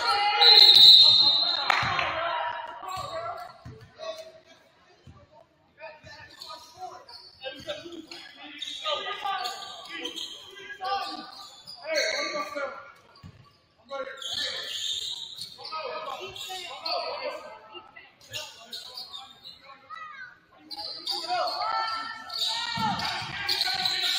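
A basketball bounces on a hard wooden floor.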